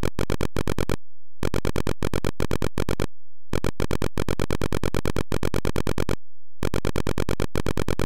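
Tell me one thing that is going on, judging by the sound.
A computer gives short, buzzy beeps in a quick rhythm, with brief pauses between bursts.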